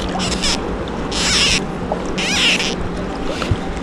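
A fishing reel clicks as line is pulled off.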